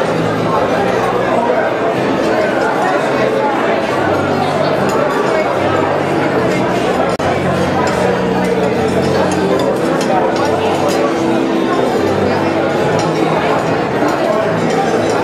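A large crowd of men and women chatter loudly in a big echoing room.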